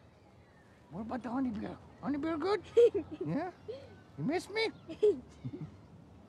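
A young girl laughs.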